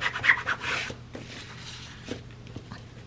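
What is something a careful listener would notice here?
Coarse fabric rustles as it is lifted and turned.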